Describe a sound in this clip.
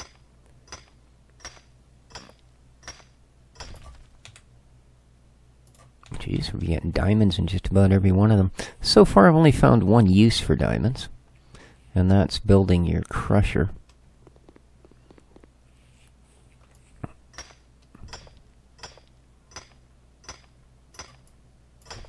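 A pickaxe strikes rock in sharp, regular knocks.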